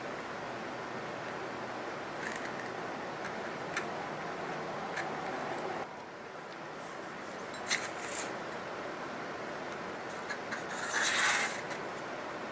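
Plastic and netting rustle and crinkle as hands handle them.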